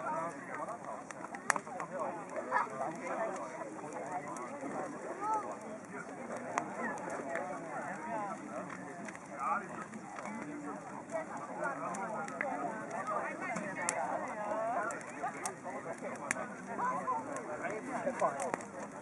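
A large wood bonfire crackles and pops outdoors.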